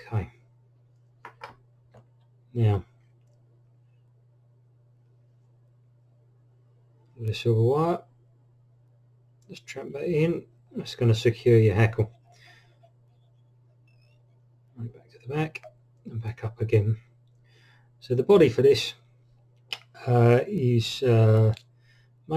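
A man talks calmly and close to the microphone, in short bursts with pauses.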